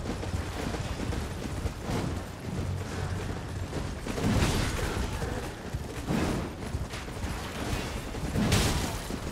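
Horse hooves thud on soft ground.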